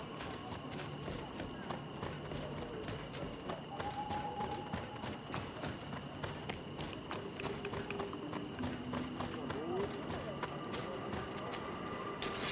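Footsteps crunch steadily along a dirt path.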